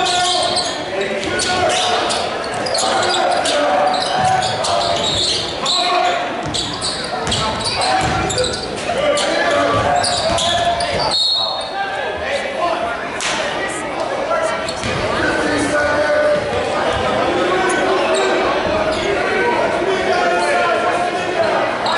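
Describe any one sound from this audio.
A crowd chatters and calls out in an echoing gym.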